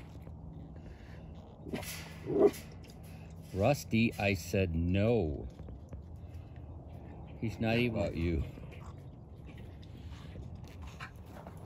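A wild pig laps water from a bowl.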